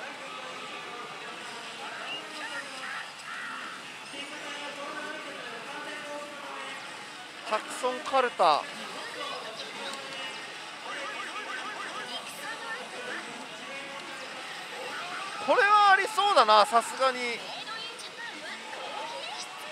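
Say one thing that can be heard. A slot machine plays busy electronic music and sound effects.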